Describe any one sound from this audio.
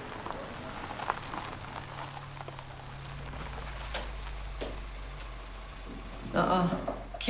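A car engine hums as a car rolls slowly along a street.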